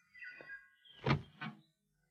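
A woman speaks briefly up close.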